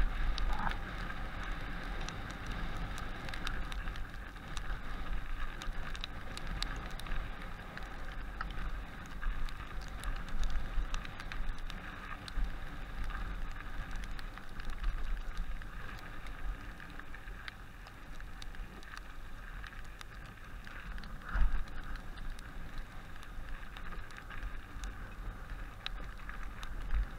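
A bicycle's parts click and rattle over bumps.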